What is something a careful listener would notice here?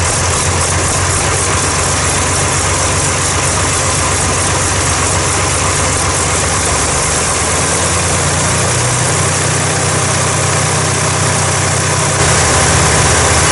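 A diesel engine runs loudly and steadily close by.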